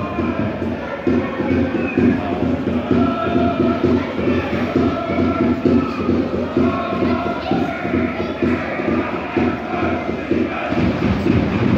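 Fans clap rhythmically in time with the chant.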